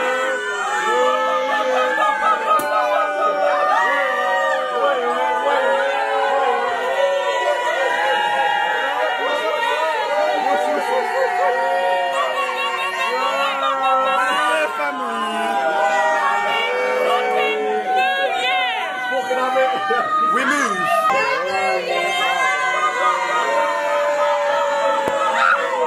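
A crowd of young men and women sings along loudly.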